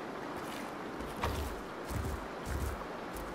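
Heavy footsteps thud on the ground.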